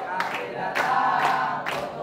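A young man calls out loudly to a group.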